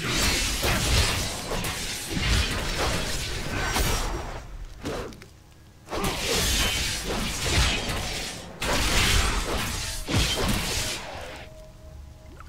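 Weapons clash and thud in a fast fight.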